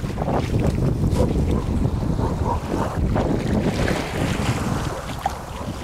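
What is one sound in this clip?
Small waves lap gently against rocks on a shore.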